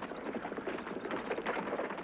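A wooden cart rattles along.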